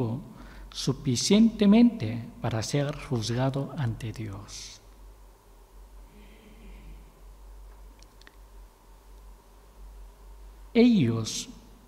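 A man reads out through a microphone in a room with some echo.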